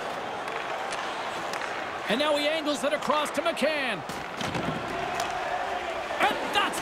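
Skates scrape across ice.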